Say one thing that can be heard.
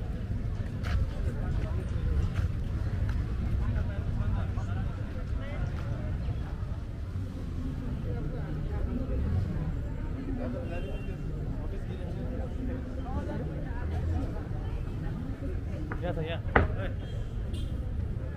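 Men and women chatter at a distance outdoors.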